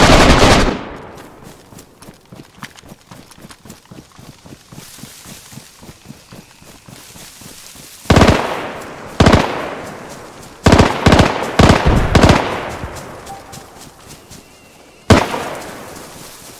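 Footsteps rustle steadily through tall grass and leaves.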